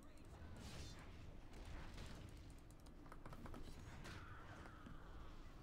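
Blades swing through the air with sharp whooshes.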